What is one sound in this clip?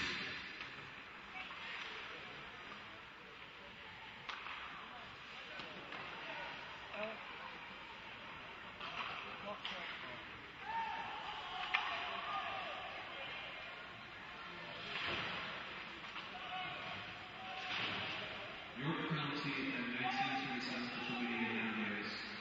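A hockey puck clacks off sticks and boards.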